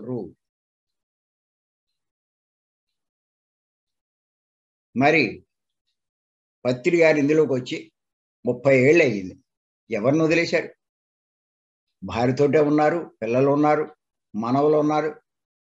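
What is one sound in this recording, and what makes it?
An elderly man speaks with animation over an online call, with pauses.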